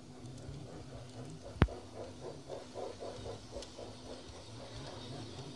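Wheels of a model train click over rail joints.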